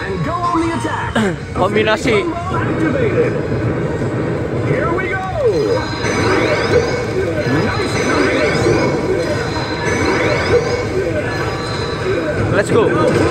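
Game sound effects whoosh and blast through a speaker.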